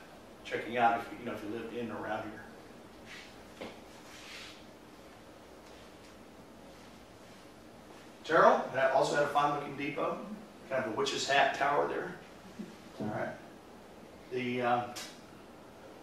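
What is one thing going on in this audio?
An elderly man speaks calmly into a microphone in a room, with pauses between phrases.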